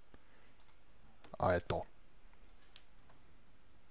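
A wooden door clicks open.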